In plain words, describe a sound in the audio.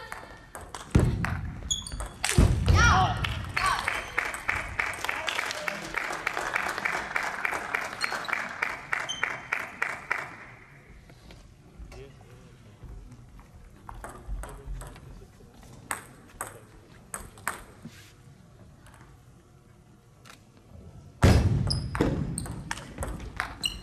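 A young player shouts loudly after a point.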